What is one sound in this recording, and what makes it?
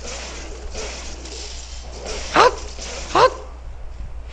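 A blade slashes and strikes with sharp hits.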